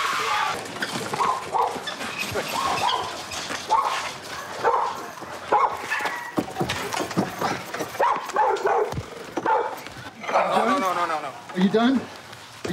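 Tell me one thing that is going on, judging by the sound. Men grunt and scuffle in a struggle.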